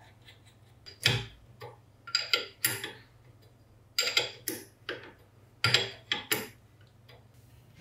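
A wrench clicks and scrapes against a metal nut.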